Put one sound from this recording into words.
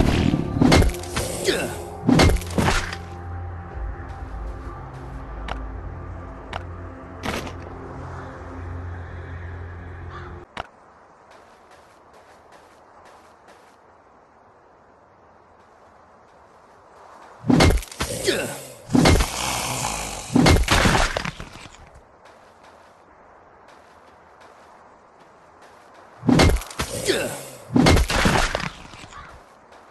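Heavy axe blows thud against zombies in a game.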